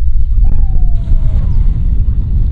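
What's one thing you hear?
A fishing net splashes onto the water.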